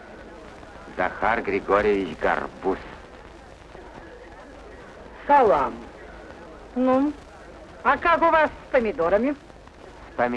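A young man speaks cheerfully, close by.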